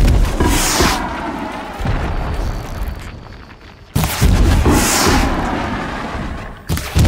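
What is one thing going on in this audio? A bowstring twangs as arrows are loosed.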